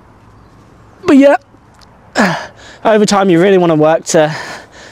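A young man grunts and groans loudly while straining.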